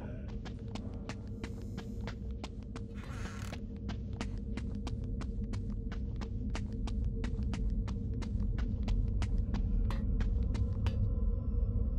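Footsteps walk across a hard floor.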